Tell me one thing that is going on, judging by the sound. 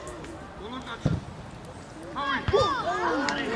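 A football is struck with a dull thud.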